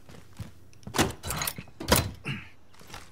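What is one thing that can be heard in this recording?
A metal case lid clicks open.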